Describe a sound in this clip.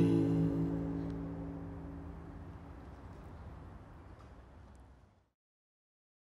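An acoustic guitar rings out and slowly fades away.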